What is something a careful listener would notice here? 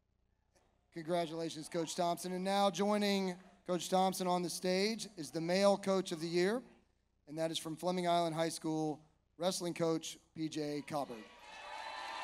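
A man speaks calmly over a loudspeaker.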